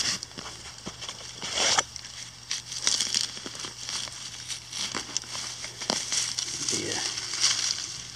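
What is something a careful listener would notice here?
Dry leaves rustle and crunch as a shovel scrapes through them.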